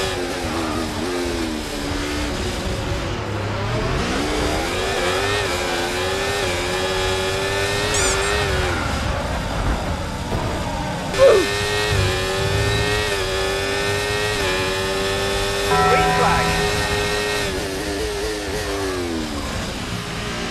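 A racing car engine whines and revs up and down through the gears.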